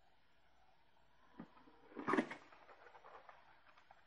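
A cardboard box flap scrapes open.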